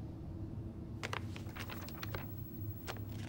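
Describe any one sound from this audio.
Paper rustles as a sheet is picked up.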